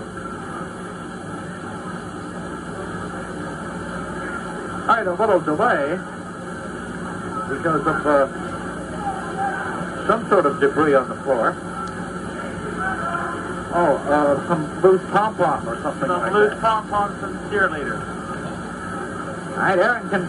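Music plays through a small stereo speaker.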